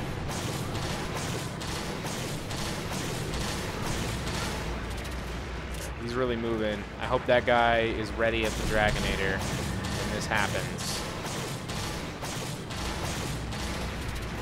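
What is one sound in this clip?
Gunshots fire repeatedly with sharp blasts.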